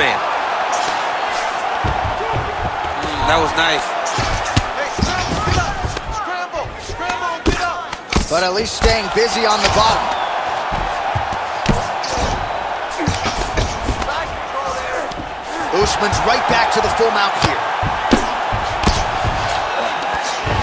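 Fists thud against a body in repeated punches.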